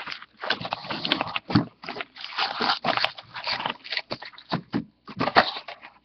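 A cardboard box flap rustles and scrapes as it is opened.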